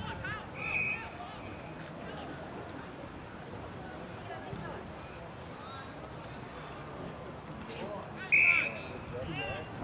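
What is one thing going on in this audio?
An umpire's whistle blows in short blasts outdoors.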